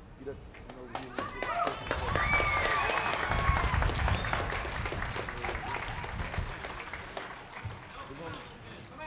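A crowd cheers and applauds outdoors.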